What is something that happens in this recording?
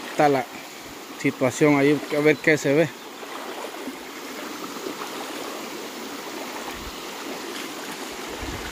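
A shallow stream burbles and trickles over rocks.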